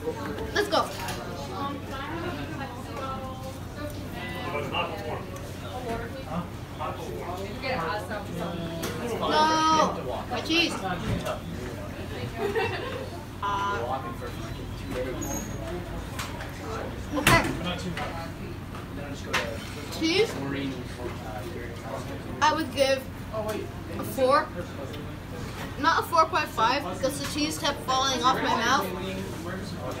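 A boy talks calmly and close by.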